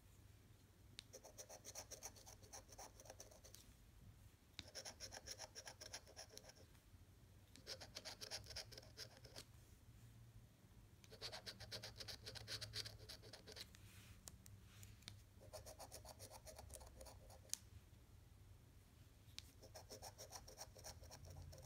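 A coin scrapes rapidly across a scratch card in short bursts.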